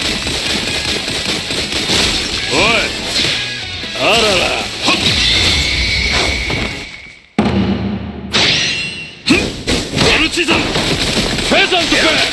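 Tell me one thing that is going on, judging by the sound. Ice shatters with a crash.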